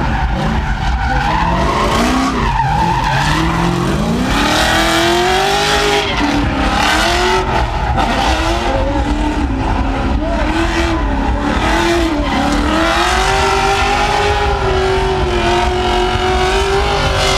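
Car engines rev hard and roar, rising and falling in pitch.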